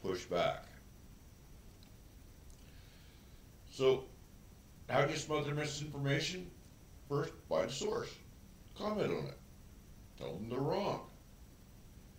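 A man speaks calmly in short phrases into a close microphone.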